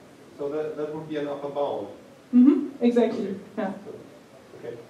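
A woman speaks through a microphone in a large echoing room.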